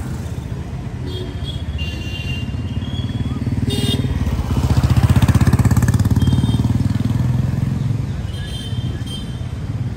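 Birds chirp in the trees.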